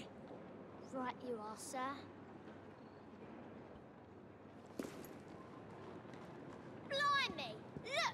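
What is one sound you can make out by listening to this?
A young girl speaks with animation.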